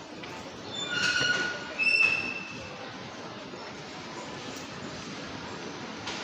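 A crowd of shoppers murmurs in a large echoing hall.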